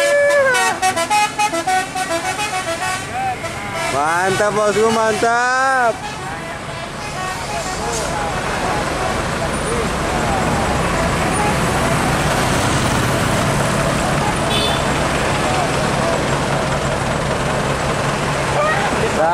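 Heavy trucks and buses rumble past on a road outdoors.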